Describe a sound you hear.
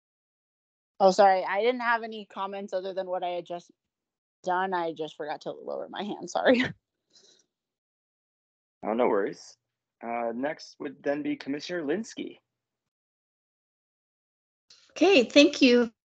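A woman speaks calmly through a meeting microphone, heard over an online call.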